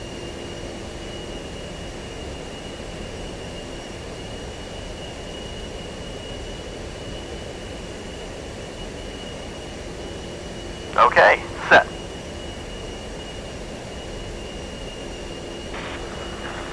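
A jet engine hums steadily inside a cockpit.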